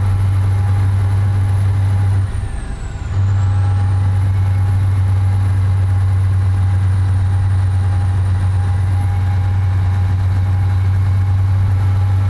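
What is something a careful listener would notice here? A truck engine drones low and steady, dipping briefly during a gear change.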